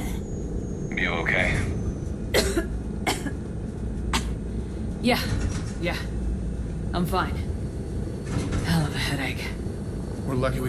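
A woman speaks in a strained, weary voice.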